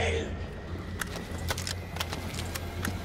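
A pistol is reloaded with sharp metallic clicks.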